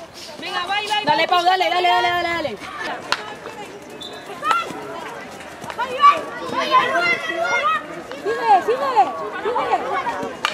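Young women shout to each other across an outdoor field.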